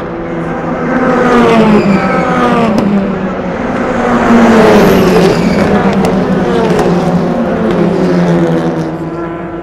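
Racing car engines roar loudly as the cars speed past and shift gears.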